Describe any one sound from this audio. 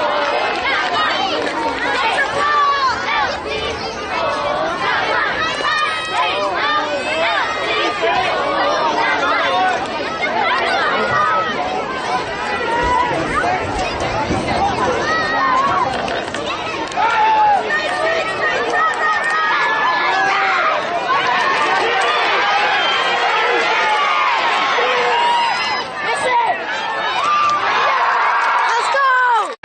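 A crowd of spectators cheers and shouts loudly outdoors.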